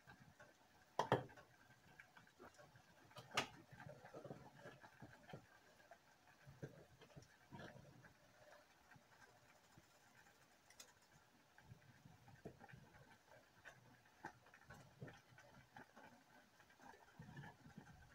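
Dry pasta rattles as a hand shakes it into a pot.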